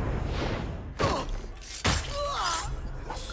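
A blade strikes with a quick swish.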